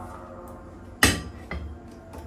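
A metal pot clanks down onto a gas stove.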